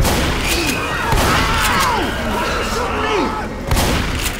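Zombies snarl and shriek nearby.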